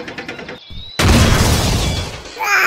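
A game vehicle explodes with a loud boom.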